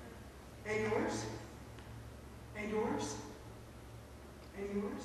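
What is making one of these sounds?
A woman speaks with animation into a microphone in an echoing hall.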